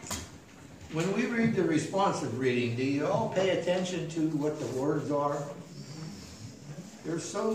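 An elderly man speaks through a microphone.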